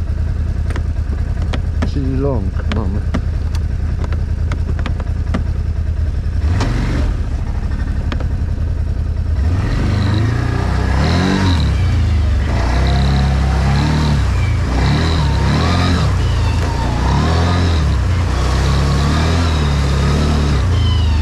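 A large-engined quad bike drones as it rides along.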